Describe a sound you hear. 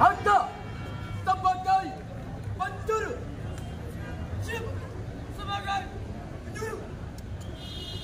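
A young man shouts marching commands loudly outdoors.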